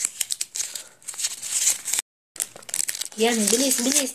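Plastic wrapping crinkles and rustles as hands open a packet.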